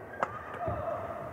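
A racket strikes a shuttlecock with a sharp crack.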